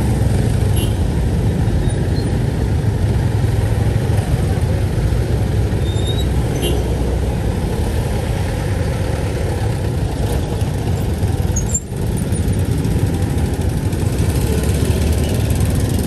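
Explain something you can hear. Many motorbike engines idle and rumble close by in heavy traffic.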